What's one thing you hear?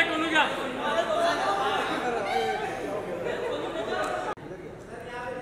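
A crowd of men talk loudly over one another close by.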